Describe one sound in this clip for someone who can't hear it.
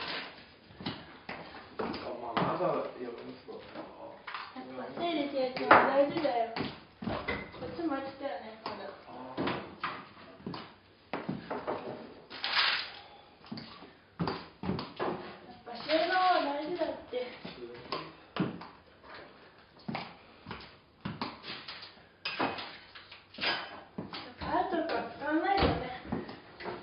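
Dishes and cupboard doors clink and knock.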